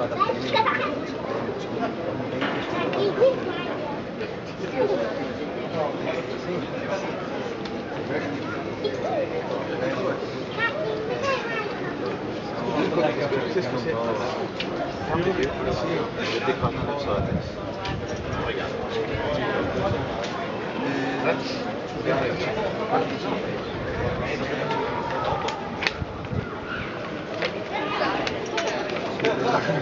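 A crowd of people chatters in the distance, outdoors.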